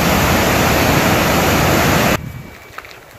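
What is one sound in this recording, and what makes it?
Water rushes loudly down a waterfall.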